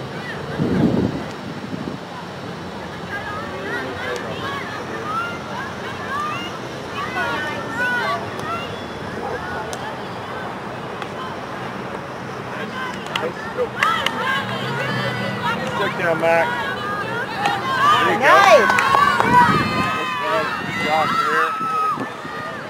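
Spectators and players shout and cheer outdoors at a distance.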